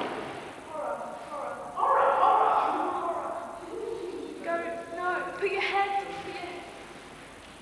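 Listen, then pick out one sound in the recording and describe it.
A man calls out loudly in an echoing room.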